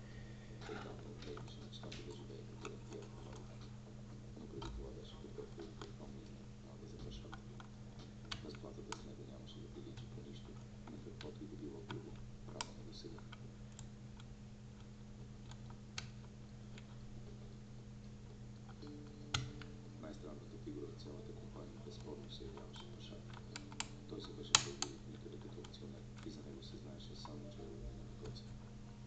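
Metal picks scrape and click softly inside a lock.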